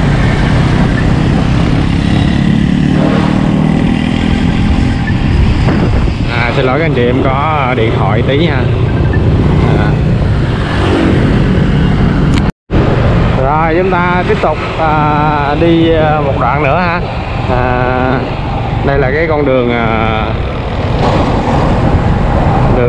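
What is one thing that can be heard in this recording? A motorbike engine hums steadily while riding along a road.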